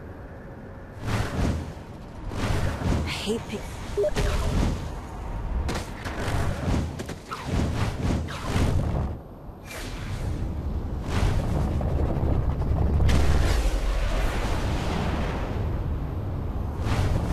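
Loud bursts of rushing, whooshing air swell and fade.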